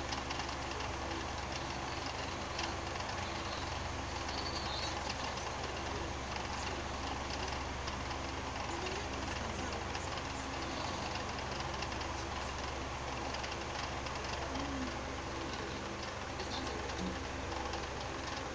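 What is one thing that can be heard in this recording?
A film soundtrack with music and effects plays from a television speaker across a room.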